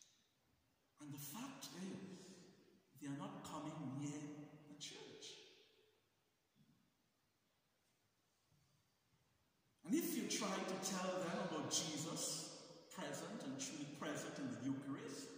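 A man speaks slowly and solemnly into a microphone, echoing in a large hall, with long pauses.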